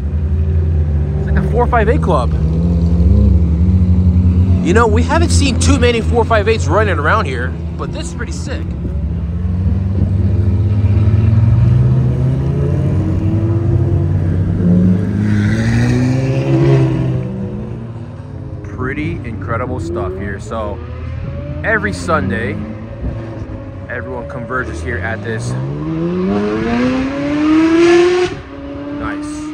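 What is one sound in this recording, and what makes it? Sports car engines rumble loudly nearby.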